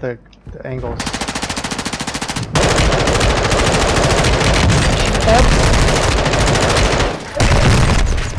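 A rifle fires rapid bursts of shots.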